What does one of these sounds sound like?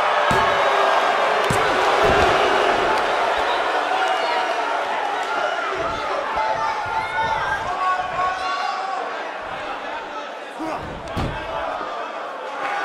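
A large crowd cheers and roars steadily in a big hall.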